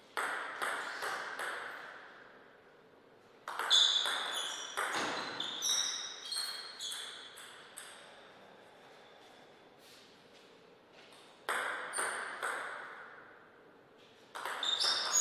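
A table tennis ball clicks back and forth off bats and the table in quick, ringing taps.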